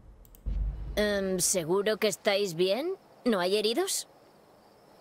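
A young woman speaks hesitantly, asking a question.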